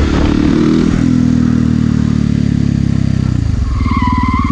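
A motorcycle engine's pitch drops as the bike slows down.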